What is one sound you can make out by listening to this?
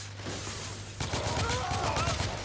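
A rifle fires in rapid bursts in a large echoing hall.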